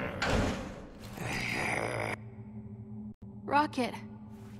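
A creature growls loudly.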